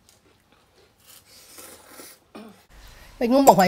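A woman slurps noodles.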